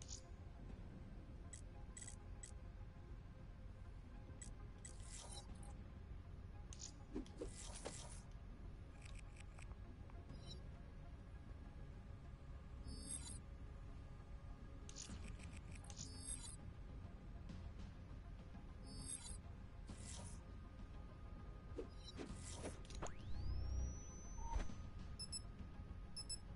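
Soft electronic menu clicks sound now and then.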